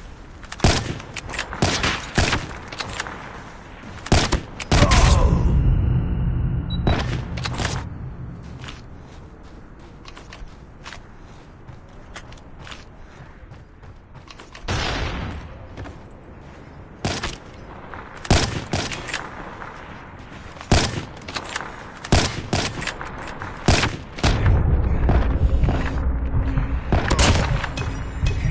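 Gunshots ring out in sharp, loud bursts.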